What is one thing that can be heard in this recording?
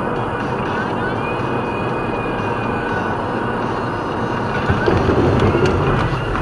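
Tyres roll on a road with a steady rush.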